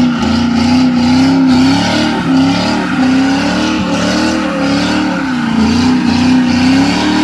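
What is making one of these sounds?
Tyres squeal and screech as they spin on pavement.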